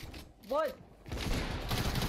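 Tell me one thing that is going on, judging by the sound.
A gun fires in quick shots.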